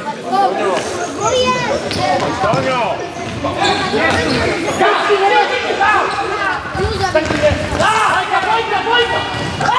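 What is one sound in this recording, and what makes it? A ball thuds as players kick it across a hard floor.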